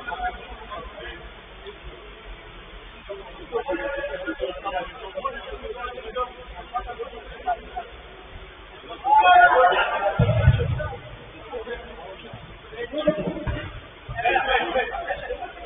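Men shout and call out to each other from a distance.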